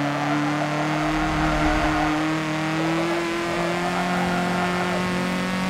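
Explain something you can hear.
A racing car engine roars steadily, its pitch slowly rising as it speeds up.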